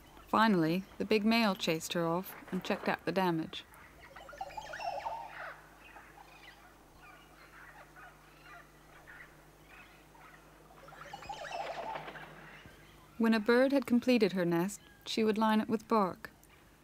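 A bird gives loud, liquid, gurgling calls in short bursts.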